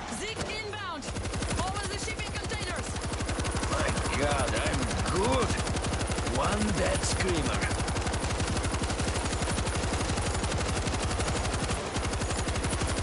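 A heavy machine gun fires in rapid, steady bursts.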